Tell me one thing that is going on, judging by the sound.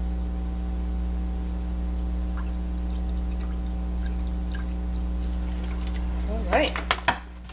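Water pours steadily into a plastic jug.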